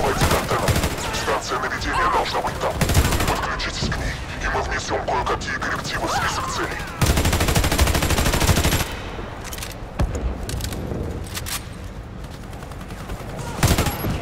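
Rifle shots crack in sharp bursts.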